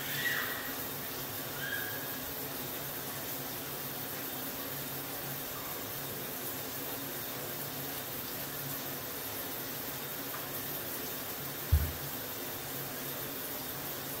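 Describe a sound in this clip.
A brush scrubs the surface of a bathtub.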